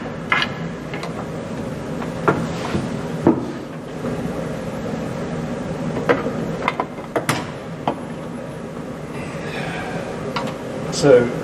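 Wooden levers clack and thump as they are pressed and released.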